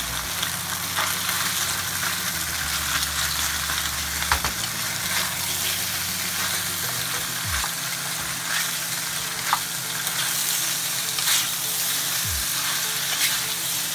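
A wooden spoon scrapes and knocks against a pan.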